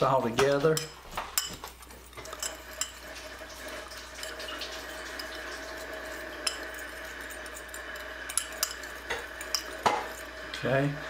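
A spoon clinks against a small bowl while stirring.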